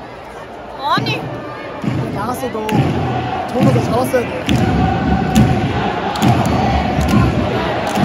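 A crowd murmurs and cheers in a large open stadium.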